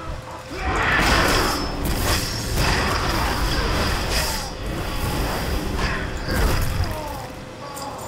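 Blades clash and strike repeatedly in a fast fight.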